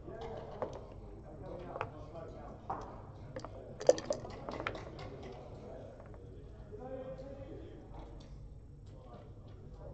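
Game pieces click as they are slid and set down on a board.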